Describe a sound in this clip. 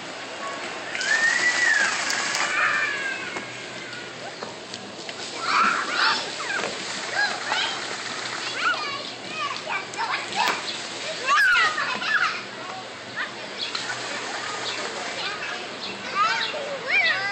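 Young children shout and chatter excitedly nearby, outdoors.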